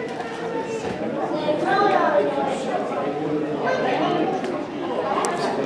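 A man speaks into a microphone in an echoing hall.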